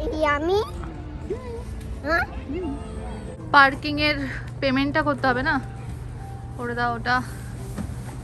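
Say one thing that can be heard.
A young woman speaks brightly and playfully, close by.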